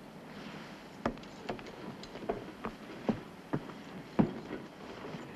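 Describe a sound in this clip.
A carriage door knocks and clicks.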